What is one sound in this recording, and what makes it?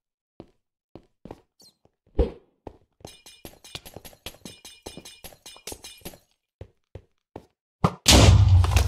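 Footsteps tap quickly on hard blocks.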